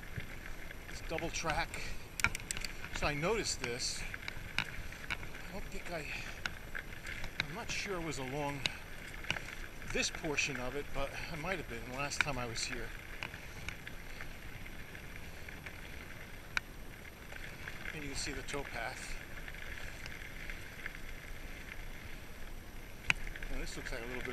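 Bicycle tyres crunch steadily over a dirt track.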